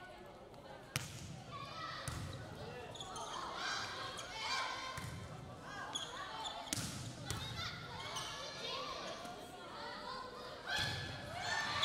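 A volleyball is struck with loud thumps.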